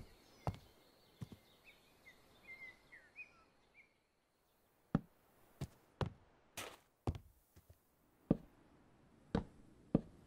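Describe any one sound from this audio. Wooden blocks thud one after another as they are placed.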